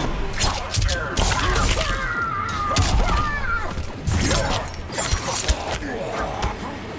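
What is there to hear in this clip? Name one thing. Punches and kicks thud and smack in a fast fight.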